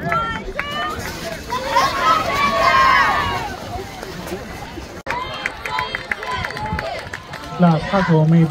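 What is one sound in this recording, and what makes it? A group of young girls shouts and cheers excitedly outdoors.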